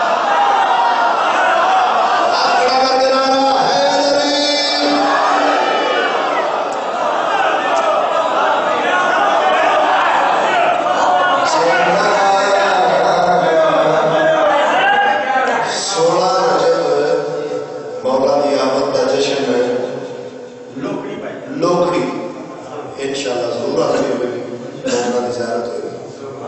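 A man speaks with fervour into a microphone over loudspeakers.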